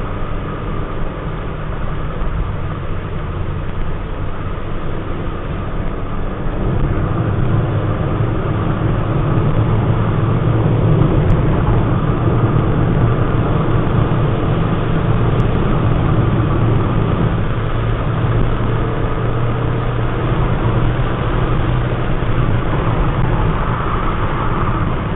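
Tyres roll on a road.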